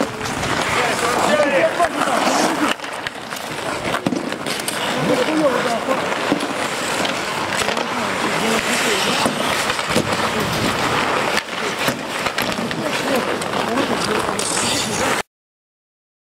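Men shout to each other across an outdoor rink.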